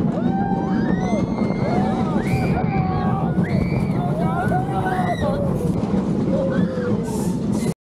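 Riders scream and whoop with excitement.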